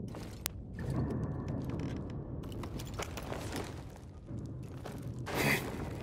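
A rope creaks and rustles as a climber pulls up along it.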